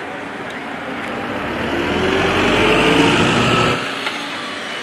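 A bus rumbles past close by.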